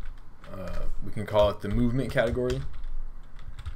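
A young man speaks calmly into a close microphone.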